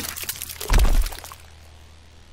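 A wet, gory splatter thuds heavily.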